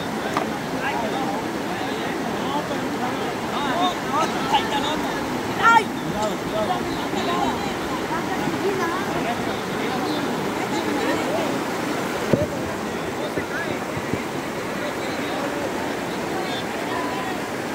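Water splashes as people wade.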